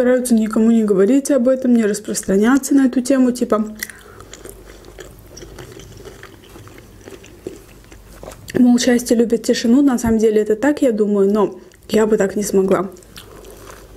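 A young woman talks softly and close to a microphone.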